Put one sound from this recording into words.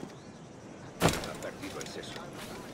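A heavy thud lands on a wooden stall.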